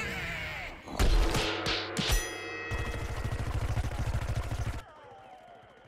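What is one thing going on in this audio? A short game jingle plays with a bright chiming tune.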